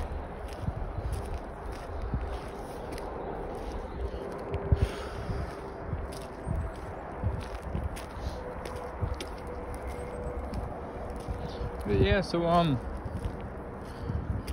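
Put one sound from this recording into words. Footsteps crunch steadily on rough pavement.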